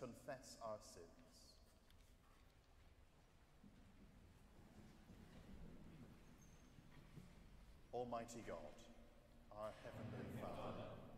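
A man chants and speaks in a large echoing hall.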